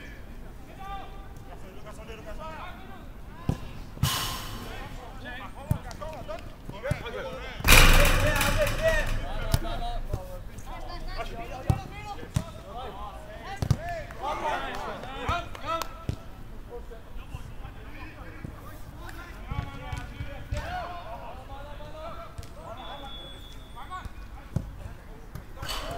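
Men shout and call out to each other across an open outdoor pitch.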